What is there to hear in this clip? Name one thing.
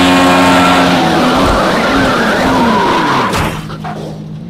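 Tyres screech as a racing car spins out.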